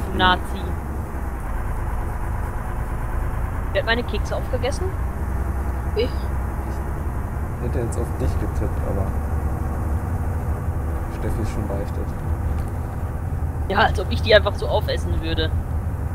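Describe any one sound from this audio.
Tyres hum on a paved road.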